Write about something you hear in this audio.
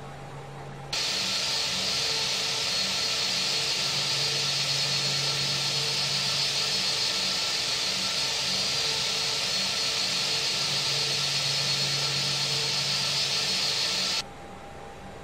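A jet engine whines and roars steadily close by.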